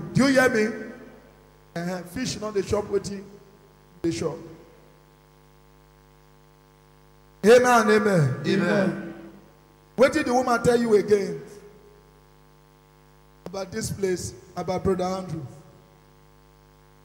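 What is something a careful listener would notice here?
A man speaks through a microphone in short bursts with pauses.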